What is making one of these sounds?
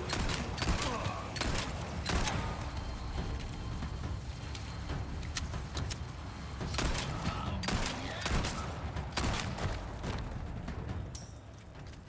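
Gunshots crack again and again.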